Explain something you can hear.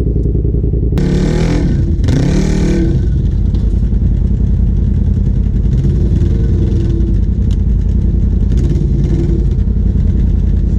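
A second off-road vehicle's engine revs nearby.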